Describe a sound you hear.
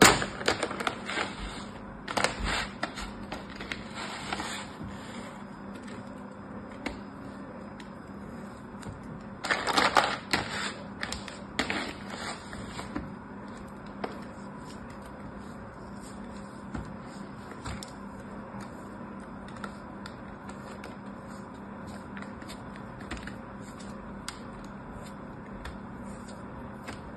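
Hands squeeze and crumble soft sand with a gentle crunching rustle.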